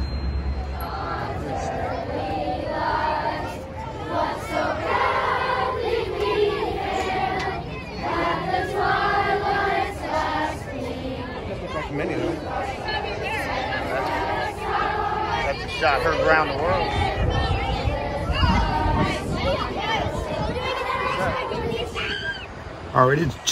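A large choir of children sings together outdoors.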